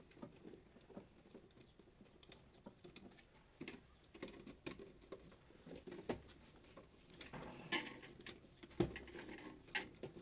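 Wires click and rustle as hands work them into terminals.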